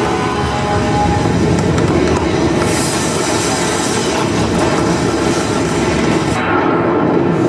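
Huge explosions roar and rumble.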